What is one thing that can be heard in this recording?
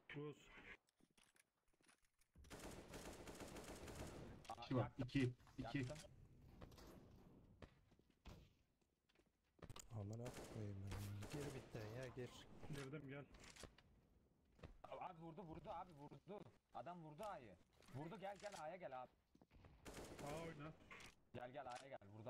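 A rifle fires short bursts of shots.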